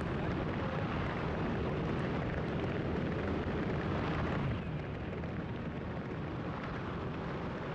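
Wind roars loudly and steadily past a microphone.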